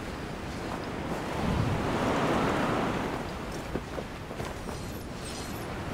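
Wind rushes past in a steady whoosh that swells and then eases.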